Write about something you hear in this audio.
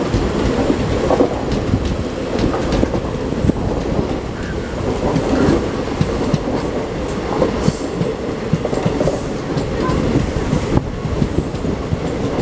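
A train rumbles and rattles along the tracks close by.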